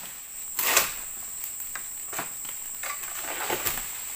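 A long pole sickle hacks at an oil palm's fronds.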